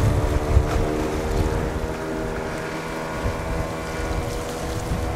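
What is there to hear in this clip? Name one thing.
Wind buffets outdoors with low gusty rumbles.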